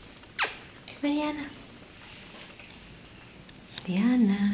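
A kitten meows loudly and close by.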